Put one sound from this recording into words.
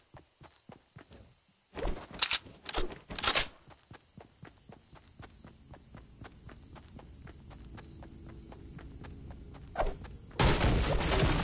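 Game footsteps patter on grass.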